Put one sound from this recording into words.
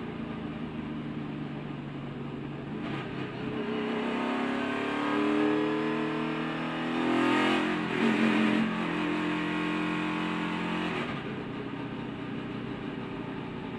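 A race car engine roars loudly up close, rising and falling in pitch as it shifts.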